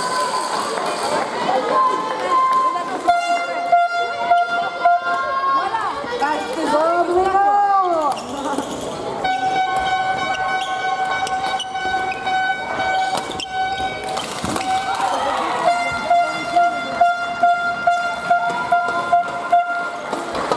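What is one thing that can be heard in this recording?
A shuttlecock is struck back and forth with rackets in a large echoing hall.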